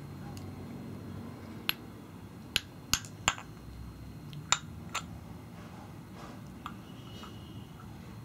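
A plastic container clicks and taps in a small child's hands.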